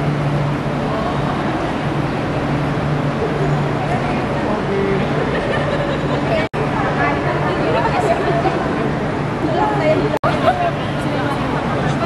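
A crowd of men and women chatter in a large echoing hall.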